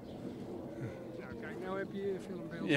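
An elderly man speaks quietly into a microphone.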